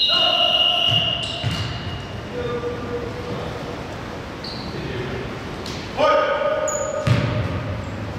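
A basketball bounces on the floor with dull thuds.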